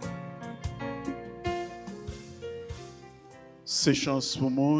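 A keyboard plays sustained chords.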